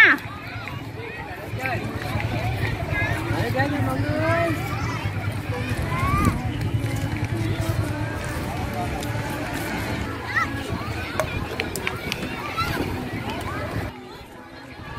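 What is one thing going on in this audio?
A crowd of people chatters and calls out all around outdoors.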